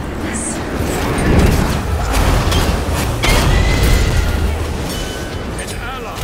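Sharp zapping blasts strike in a video game fight.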